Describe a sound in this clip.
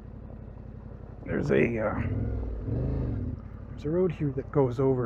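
Tyres crunch slowly over gravel.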